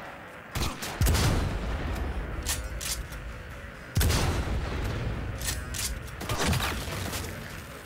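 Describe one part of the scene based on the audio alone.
A sniper rifle fires loud single shots that boom and echo.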